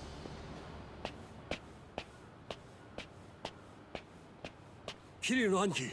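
Footsteps tap slowly and evenly on hard ground.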